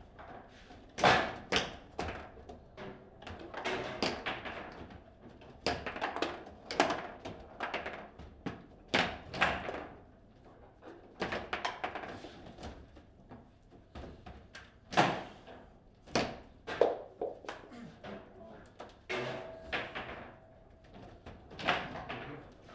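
Players strike a hard plastic ball with the figures of a table football game.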